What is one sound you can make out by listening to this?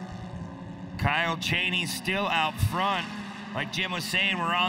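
A racing buggy's engine revs hard and whines up close, rising and falling in pitch.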